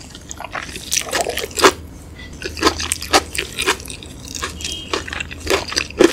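Gloved fingers rustle and pick at rice close up.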